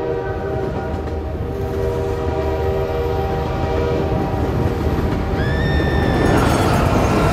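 A train rumbles along the tracks, growing louder as it comes closer.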